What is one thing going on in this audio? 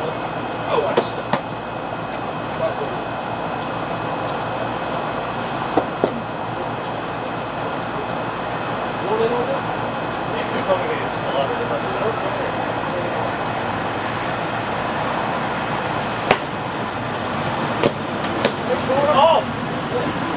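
Plastic pipes clack against each other.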